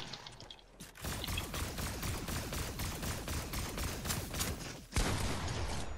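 A video game automatic rifle fires in rapid bursts.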